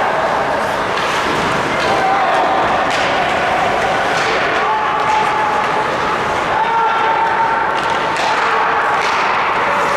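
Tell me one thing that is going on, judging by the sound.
Skates scrape and hiss across ice.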